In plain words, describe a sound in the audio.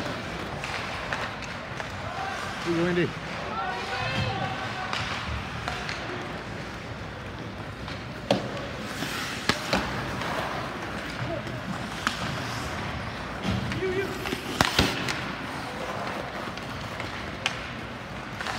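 Hockey sticks and a puck clack sharply on the ice.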